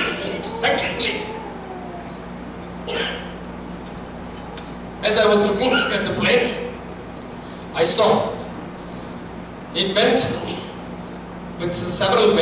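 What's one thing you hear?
A man speaks through a microphone with pauses, heard in an echoing hall.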